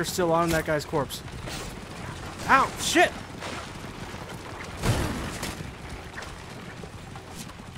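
Horses gallop with pounding hooves.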